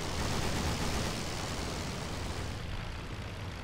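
Wind rushes past an open cockpit.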